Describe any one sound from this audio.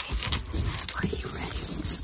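Beads clack softly against each other.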